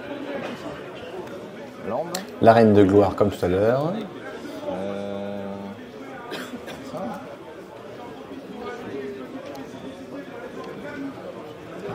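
Playing cards slide and tap on a soft mat.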